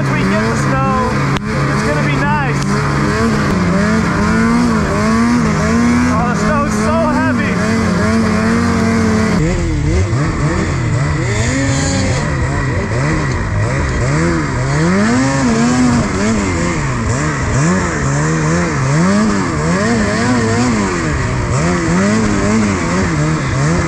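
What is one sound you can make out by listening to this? Snow hisses under a snowmobile's tracks.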